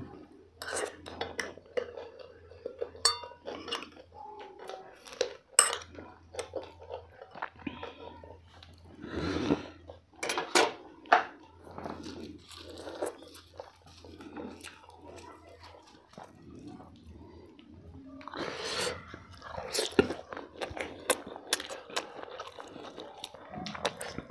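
A woman chews and smacks her lips loudly, close to a microphone.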